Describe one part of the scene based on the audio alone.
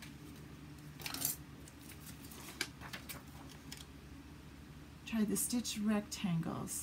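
Paper rustles and slides against a table.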